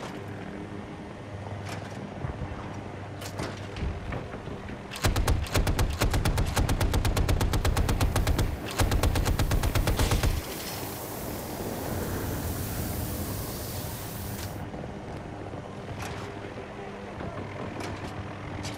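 A helicopter's rotor drones steadily overhead.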